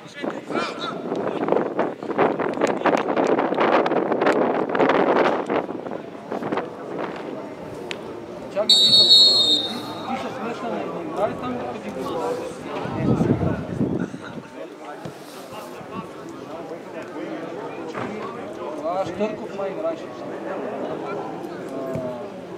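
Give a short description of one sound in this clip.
Men shout and call out to each other across an open field.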